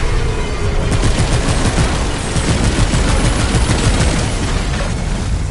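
A gun fires rapid energy shots.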